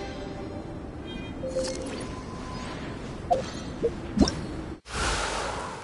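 A treasure chest creaks open with a sparkling chime.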